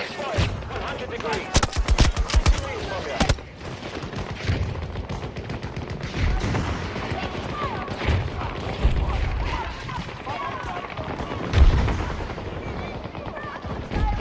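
A light machine gun fires.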